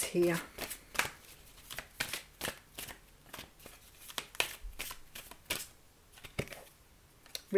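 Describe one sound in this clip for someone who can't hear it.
Playing cards are shuffled with quick riffling clicks.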